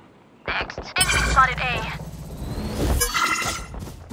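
A magical ability crackles and whooshes loudly.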